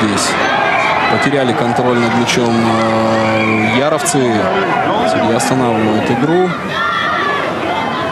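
A large crowd of spectators murmurs and cheers in an open stadium.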